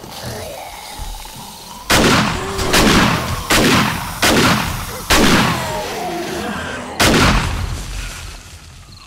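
A zombie snarls and groans close by.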